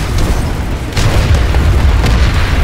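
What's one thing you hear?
An explosion bursts loudly nearby.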